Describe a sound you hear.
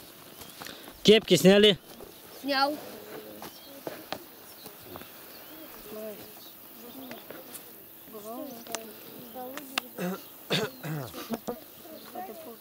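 Children and adults talk and call out nearby.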